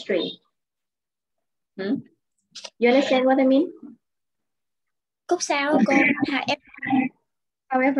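A young woman speaks clearly and with animation into a close microphone, in short bursts with pauses.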